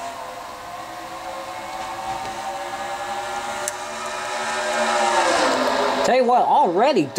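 Many racing car engines roar together at high speed, their pitch slowly rising.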